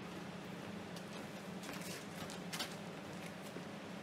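Footsteps shuffle and crunch on a gritty floor.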